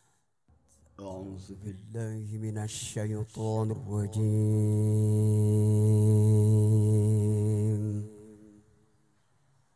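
A man chants in a long, melodic sung voice through a microphone, echoing over loudspeakers.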